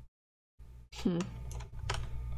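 A short digital chime sounds as a card is played.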